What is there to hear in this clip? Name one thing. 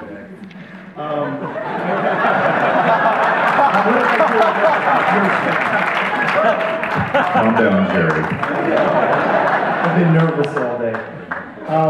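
An audience laughs loudly together.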